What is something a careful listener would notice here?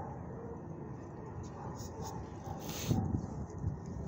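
A dog's paws crunch on gravel.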